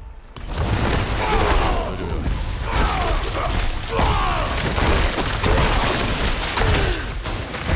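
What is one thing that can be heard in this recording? Game combat sounds crash and thud as a character fights a swarm of creatures.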